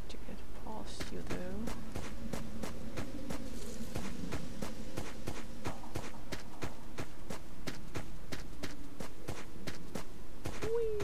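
Footsteps crunch steadily on dry ground.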